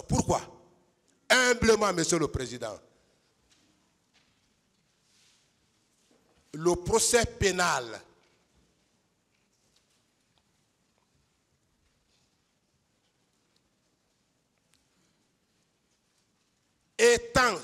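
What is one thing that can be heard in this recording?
A man speaks forcefully into a microphone in bursts, with long pauses.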